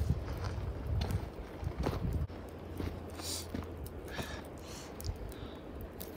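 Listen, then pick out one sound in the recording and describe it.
Footsteps crunch on stones.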